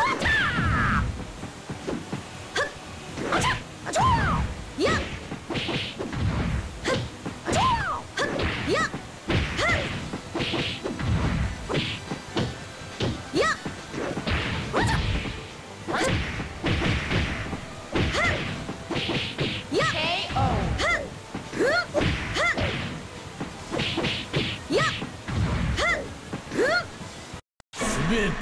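Punches and kicks land with sharp, quick smacks.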